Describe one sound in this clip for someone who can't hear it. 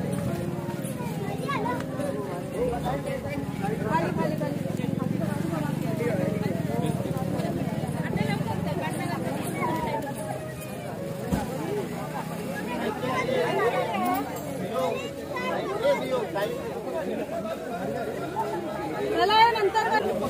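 A crowd of men and women chatters and calls out nearby, outdoors.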